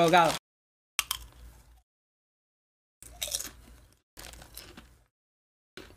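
A young man crunches chips while eating.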